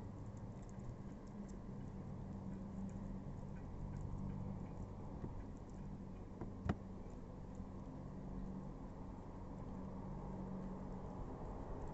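A dog licks and chews noisily.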